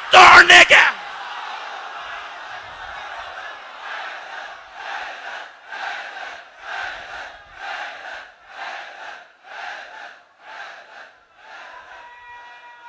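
A large crowd chants in a steady rhythm.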